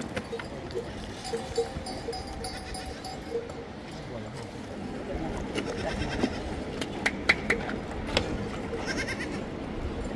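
Young goats bleat.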